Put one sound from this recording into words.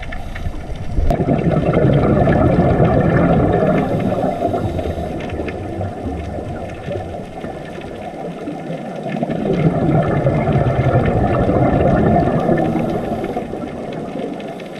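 Scuba bubbles rumble and gurgle close by underwater in long bursts.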